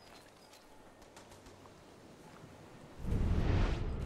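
Water laps softly against a shore.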